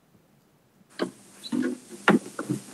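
A man speaks briefly over an online call.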